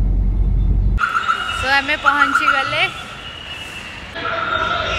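A young woman speaks cheerfully, close by.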